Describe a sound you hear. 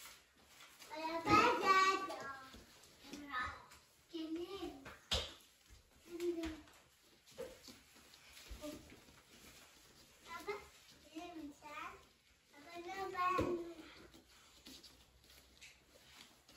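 A young child speaks excitedly nearby.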